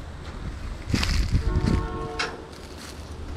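A metal gate creaks and squeals as it swings.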